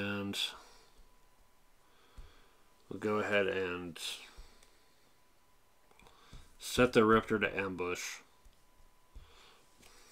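Playing cards slide and tap softly on a table.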